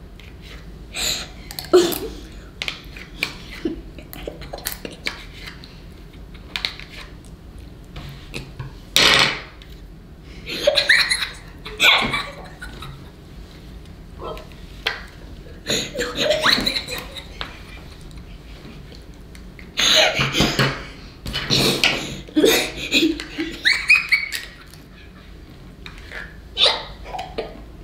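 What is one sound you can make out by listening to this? A boy laughs and speaks with animation close by.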